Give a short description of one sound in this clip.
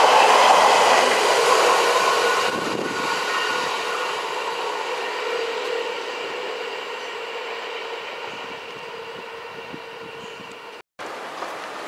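A train's engine hums as it pulls away into the distance.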